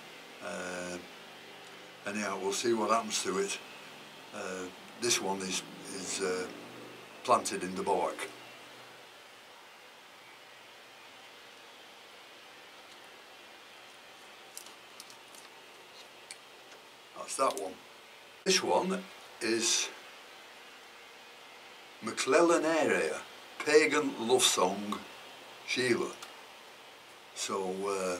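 A man talks calmly and closely, pausing now and then.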